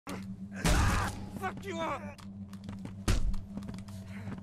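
Heavy blows land with loud, booming thuds.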